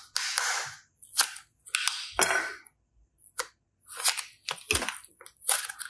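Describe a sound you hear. A plastic toy clicks and snaps as it is pulled apart.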